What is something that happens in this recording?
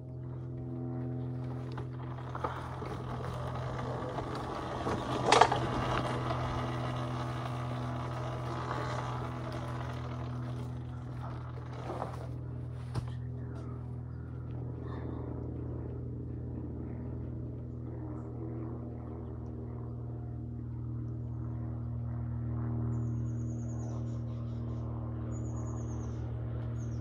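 Tyres crunch over dirt and dry leaves.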